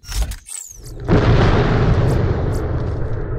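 A low rumbling hum swells up in a game world.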